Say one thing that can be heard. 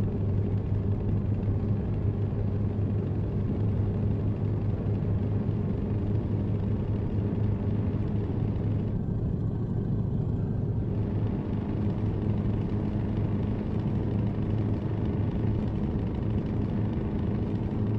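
A truck engine drones steadily with a low rumble.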